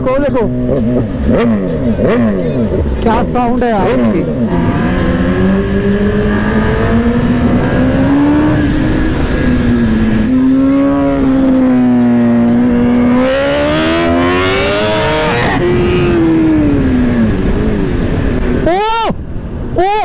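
A sports motorcycle engine roars close by, revving up and down as it accelerates and shifts gears.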